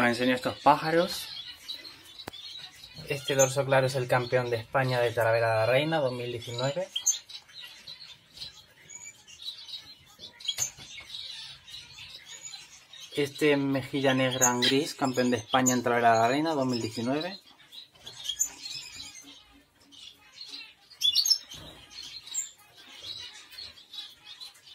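Small finches chirp and call in short, nasal bursts.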